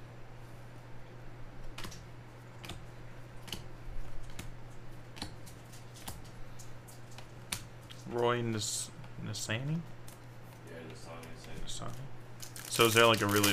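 Trading cards shuffle and flick in hands with soft clicks.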